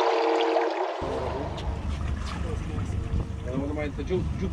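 Wind blows across open water and buffets the microphone.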